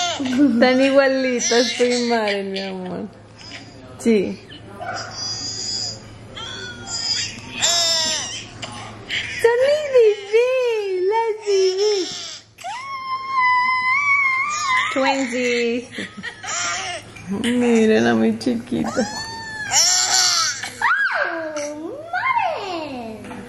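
A baby babbles and coos.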